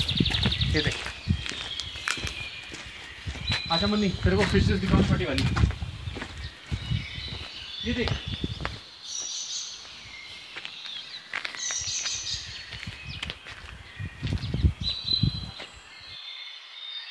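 Footsteps crunch on stones and gravel.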